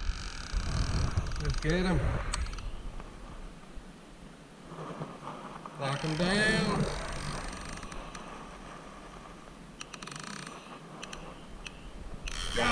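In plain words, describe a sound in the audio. A fishing reel clicks as its handle is cranked.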